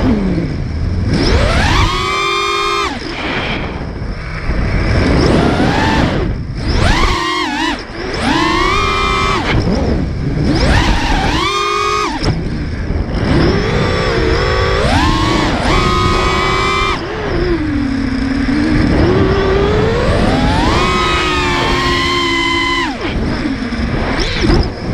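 Drone motors whine loudly, revving up and down in rapid surges.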